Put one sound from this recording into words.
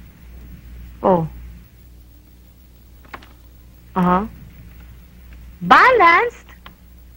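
A young woman speaks into a telephone in short, drawn-out phrases.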